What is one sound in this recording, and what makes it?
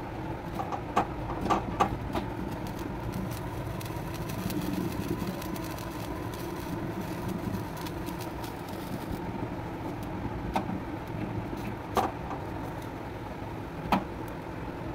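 Metal clicks against a wire grill.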